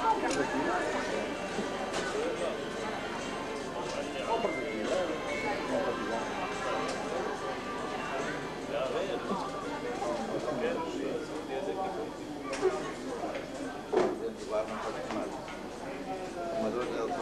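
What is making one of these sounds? Men talk at a distance in a large echoing hall.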